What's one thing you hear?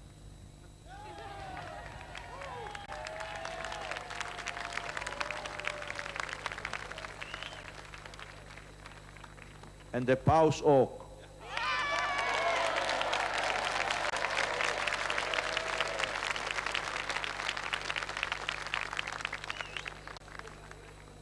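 A large crowd cheers and chants loudly.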